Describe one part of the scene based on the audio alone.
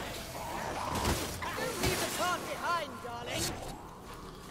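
Blades hack into creatures with heavy, wet thuds.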